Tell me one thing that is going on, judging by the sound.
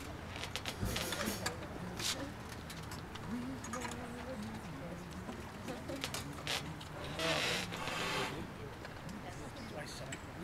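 A concert band plays a tune outdoors.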